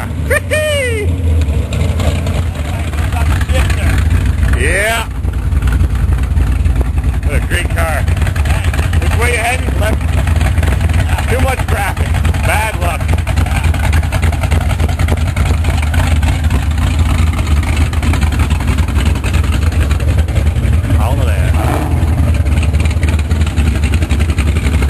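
A hot rod engine idles with a loud, deep, throbbing rumble close by.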